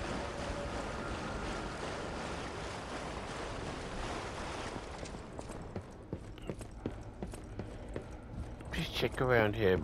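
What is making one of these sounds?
Footsteps run quickly across stone pavement.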